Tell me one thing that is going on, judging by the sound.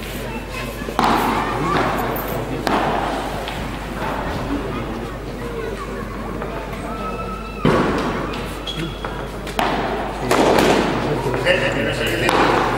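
Tennis balls are struck with rackets, with sharp pops echoing in a large hall.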